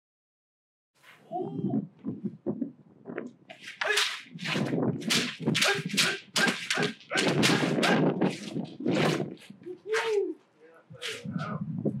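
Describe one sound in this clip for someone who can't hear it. Bamboo swords clack against each other and against padded armour.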